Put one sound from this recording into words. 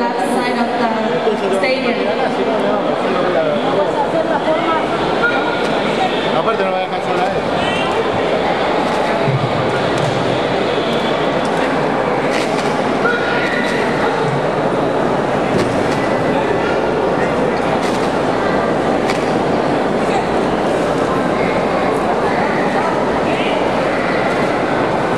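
A large crowd murmurs and chatters in an echoing hall.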